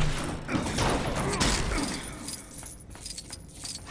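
Small plastic pieces clatter and scatter as something smashes apart.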